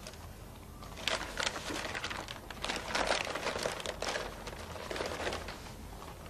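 Paper rustles as a package is unwrapped.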